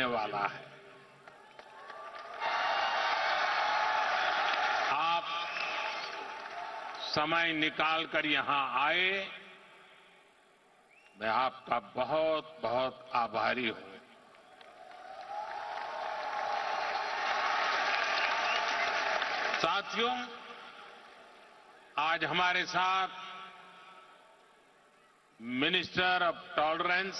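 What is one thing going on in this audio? A man speaks through a microphone over loudspeakers in a large hall.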